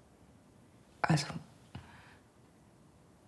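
A woman speaks quietly and tensely, close by.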